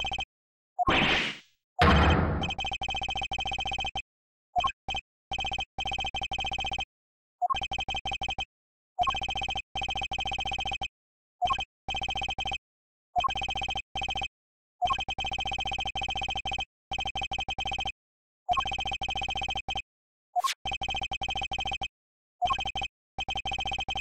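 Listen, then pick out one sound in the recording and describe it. Short electronic blips chatter rapidly in bursts.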